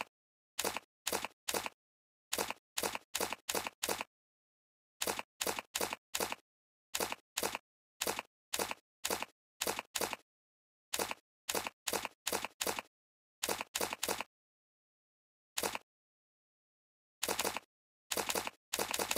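Short menu clicks tick in quick bursts.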